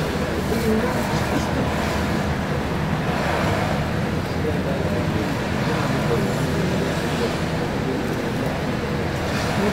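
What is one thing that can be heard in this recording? Traffic rumbles steadily nearby, heard through a window.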